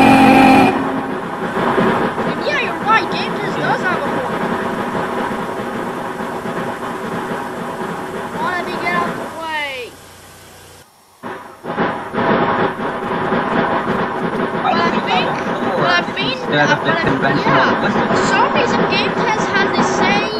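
A steam locomotive chugs along steadily.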